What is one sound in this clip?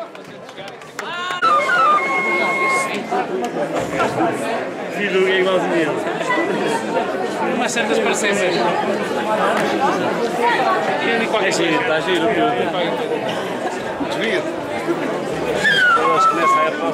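A flute plays a shrill tune close by.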